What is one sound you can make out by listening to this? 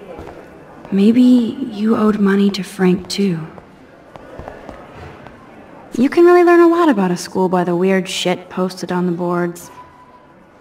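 A young woman speaks calmly and thoughtfully, close to the microphone.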